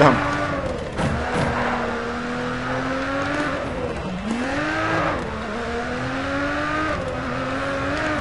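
A racing car engine roars and revs up and down through the gears.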